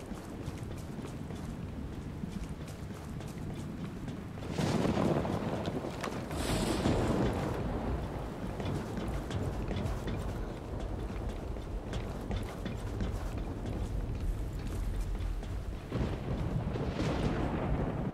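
Footsteps clank on metal stairs and grating.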